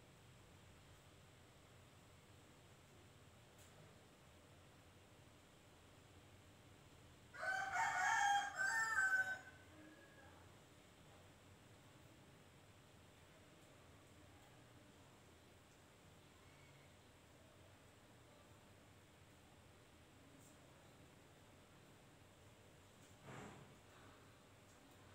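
Fabric rustles softly as cloth is handled.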